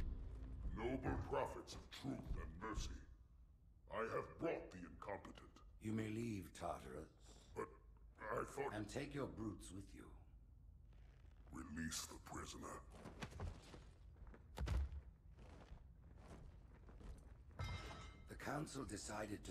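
A young man speaks close to a microphone.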